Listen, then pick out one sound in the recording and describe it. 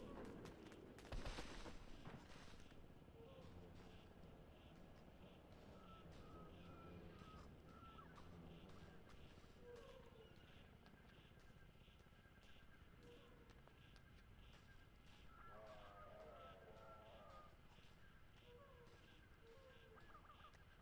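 Bare feet patter quickly on dirt and grass.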